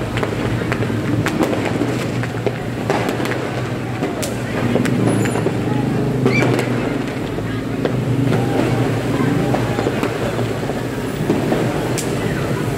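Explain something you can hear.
Motorbike engines hum along a wet street.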